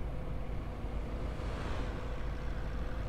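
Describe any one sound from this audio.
A car whooshes past going the other way.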